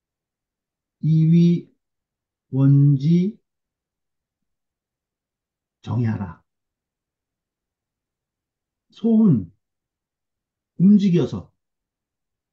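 A man reads out short phrases slowly over an online call, with pauses between them.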